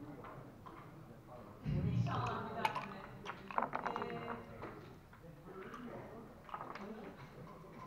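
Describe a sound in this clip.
Game pieces click and slide on a wooden board.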